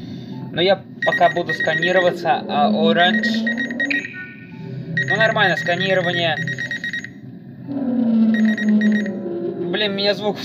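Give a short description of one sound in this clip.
An electronic scanner hums steadily.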